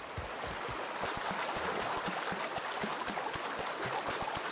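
Water splashes underfoot with each step.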